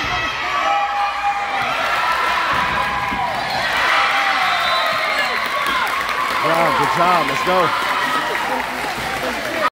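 A crowd of spectators chatters and cheers in an echoing gym.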